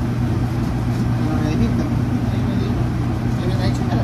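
A knife cuts through a sandwich on a board.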